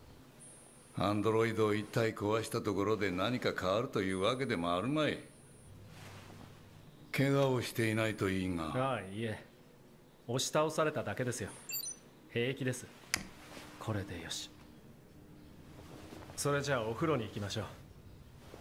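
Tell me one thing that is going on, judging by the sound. A young man speaks calmly and softly, close by.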